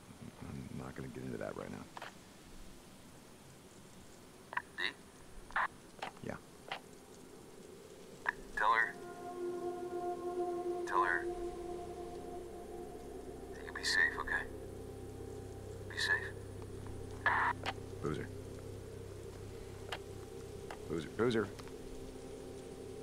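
A man speaks into a walkie-talkie in short, urgent calls.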